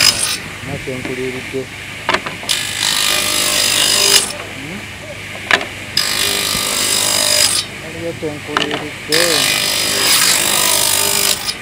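A table saw whines loudly as it cuts through wood in repeated bursts.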